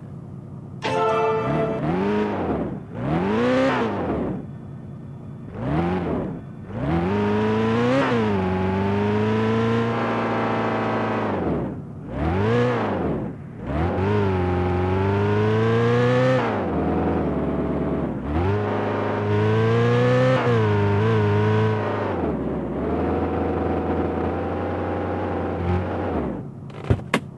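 A car engine revs up and down repeatedly as the car speeds up and slows.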